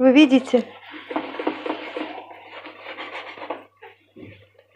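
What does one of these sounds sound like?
A sponge scrubs a wet, foamy surface with a soft squelching rub.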